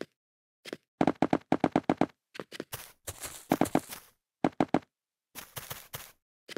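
Blocks are placed with quick soft thuds in a game.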